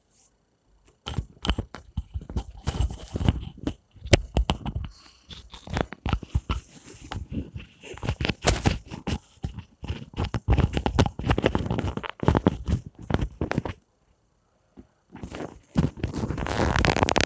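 A clip-on microphone rustles and knocks as a hand fiddles with it.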